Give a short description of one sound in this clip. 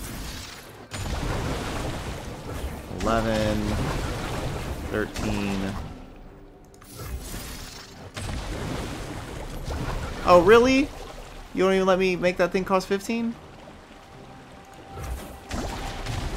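Game card effects chime and whoosh.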